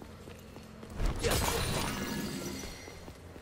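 A weapon strikes with a loud crackling burst of impact.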